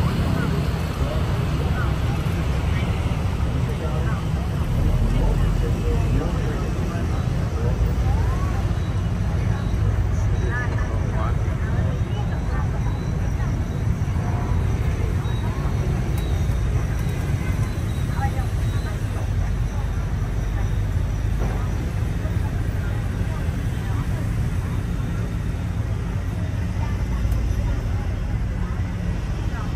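Motorbike engines hum and buzz in busy street traffic.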